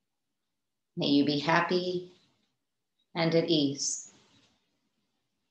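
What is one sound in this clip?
A woman speaks calmly and softly through a microphone, in two short phrases with a pause between.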